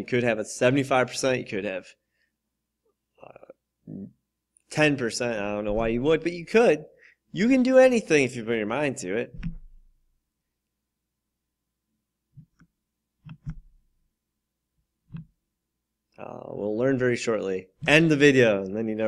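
A man speaks calmly and clearly into a close microphone, with pauses.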